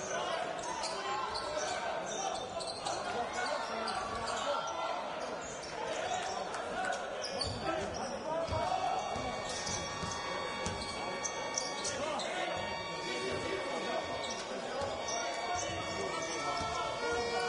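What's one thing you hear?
A basketball bounces on the floor.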